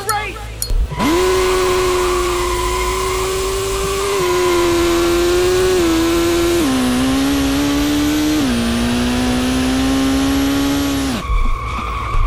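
A car engine roars at high revs, dropping in pitch with each gear change.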